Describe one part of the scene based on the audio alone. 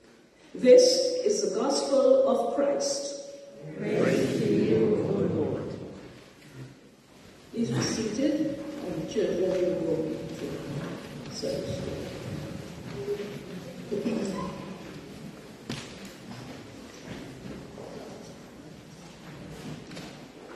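A woman speaks steadily into a microphone in an echoing hall.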